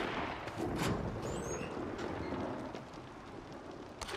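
A metal cabinet door creaks open.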